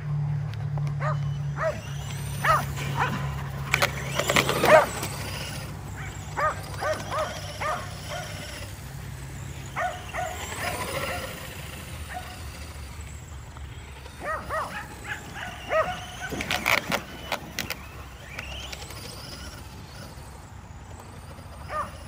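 Dogs bark and yelp excitedly.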